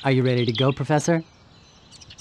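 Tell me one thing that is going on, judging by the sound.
Short electronic blips chirp quickly one after another.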